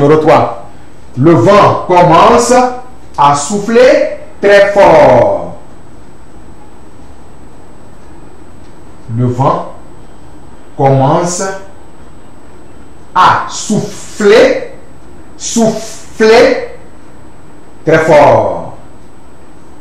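A man speaks slowly and clearly into a microphone, dictating with pauses.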